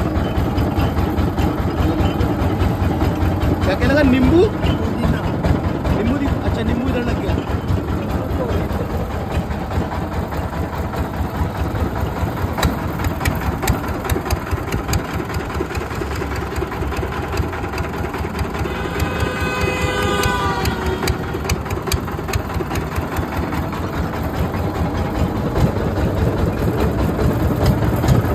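An engine runs with a steady low rumble.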